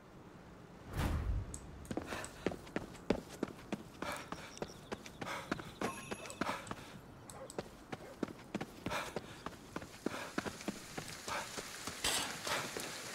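Quick footsteps run through grass and over wet pavement.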